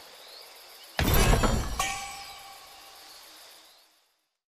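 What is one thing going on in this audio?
A bright magical chime rings out.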